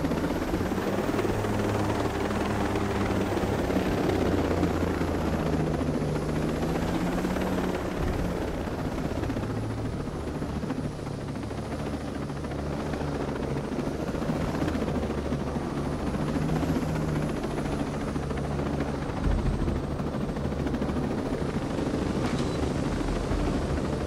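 A helicopter's engine drones steadily.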